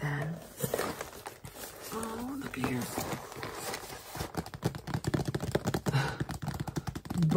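A cardboard box rustles and taps as it is handled.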